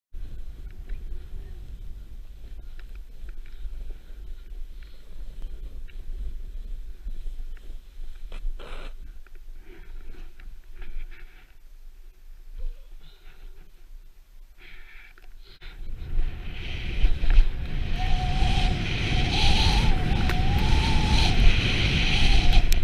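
Wind buffets the microphone, growing louder as the skier speeds up.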